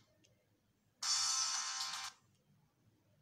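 A handheld game console plays a short startup chime.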